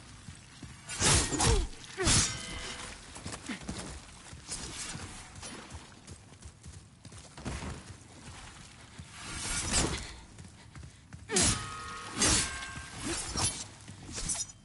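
Blades clash with sharp metallic rings.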